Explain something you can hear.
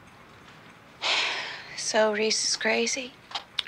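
A young woman speaks in a shaken, breathy voice close by.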